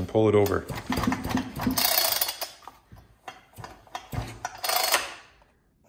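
A chainsaw body knocks and rattles against a wooden bench.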